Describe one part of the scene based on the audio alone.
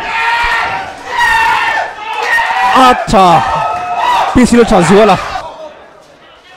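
A crowd of spectators shouts and cheers excitedly nearby.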